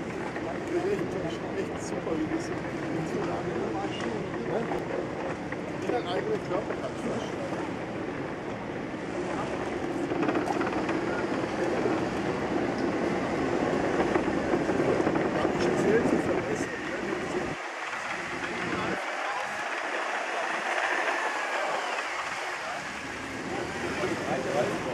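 Electric scooter wheels rumble over wooden planks.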